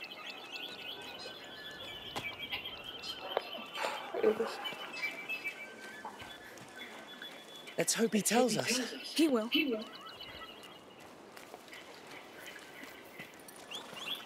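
Footsteps crunch on gravel and stone.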